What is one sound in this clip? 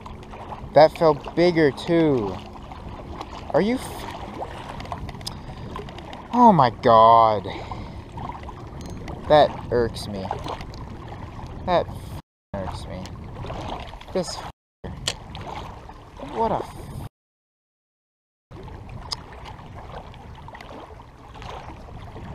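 Small waves lap against rocks at the water's edge.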